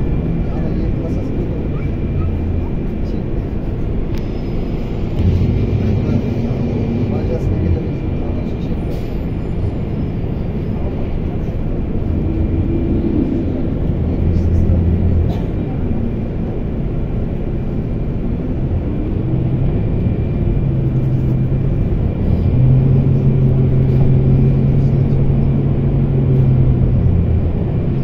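A bus engine rumbles steadily from inside.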